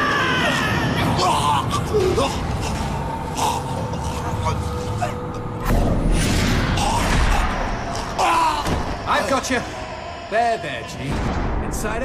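Blows and whooshes crash in a fight.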